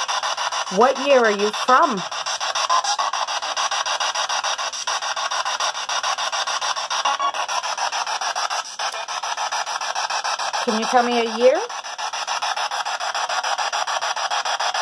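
Radio static hisses with a fast, steady chopping pulse.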